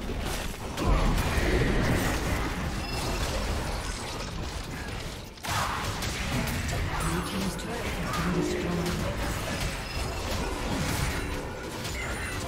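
Magic blasts and weapon hits crackle and thud in a busy video game battle.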